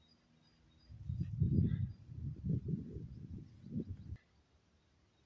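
A small dog runs through grass, rustling it.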